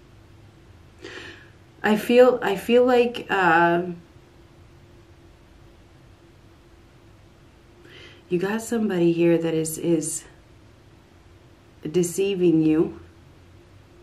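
An older woman speaks close to a microphone, in short emotional bursts.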